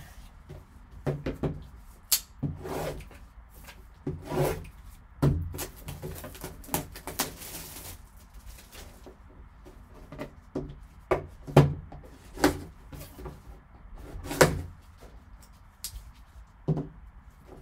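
A cardboard box knocks and slides on a table.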